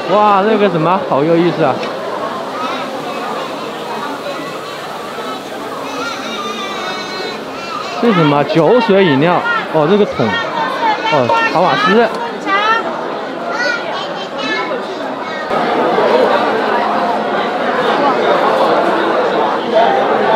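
A crowd of people chatter and talk around.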